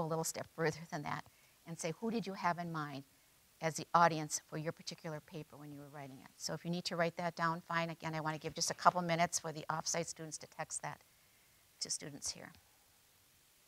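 A middle-aged woman speaks with animation through a microphone in a large echoing hall.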